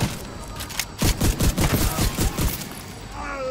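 Gunshots crack in rapid bursts.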